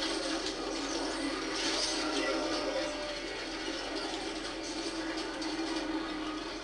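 Rapid gunfire and blasts from a video game play loudly through a television speaker.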